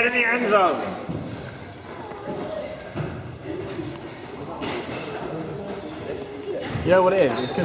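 Young people call out in the distance across an echoing hall.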